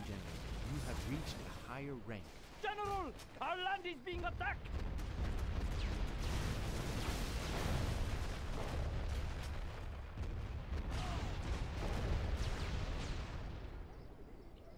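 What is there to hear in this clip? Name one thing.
Artillery shells explode with deep booming rumbles.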